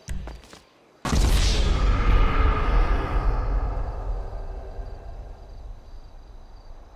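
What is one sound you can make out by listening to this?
A single loud gunshot bangs and echoes away.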